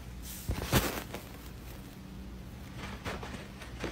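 A fidget spinner whirs as it spins on a carpet.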